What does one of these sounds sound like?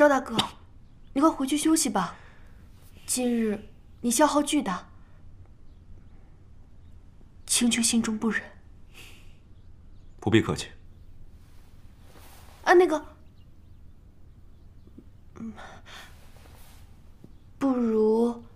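A young woman speaks in surprise, close by.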